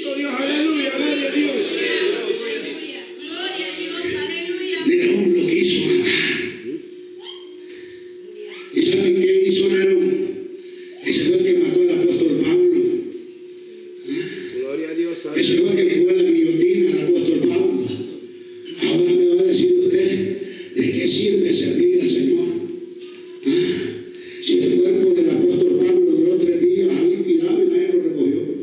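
A man preaches with passion into a microphone, heard through loudspeakers in an echoing hall.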